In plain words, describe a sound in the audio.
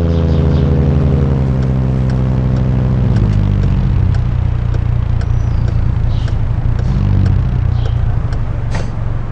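A game car engine drones, rising in pitch as a hatchback car accelerates.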